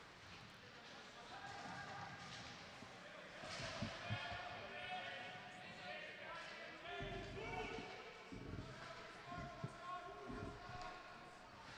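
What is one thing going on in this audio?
Skates scrape and swish on ice.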